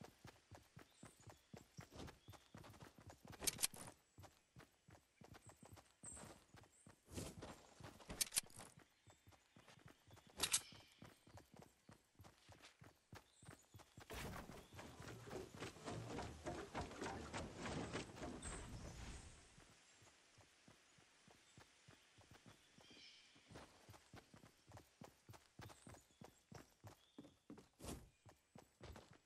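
Quick footsteps patter on the ground.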